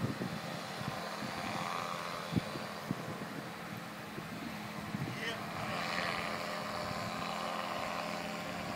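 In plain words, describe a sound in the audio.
A paramotor engine drones steadily in the distance.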